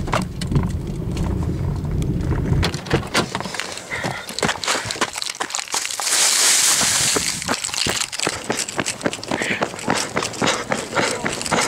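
Footsteps run quickly over a path outdoors.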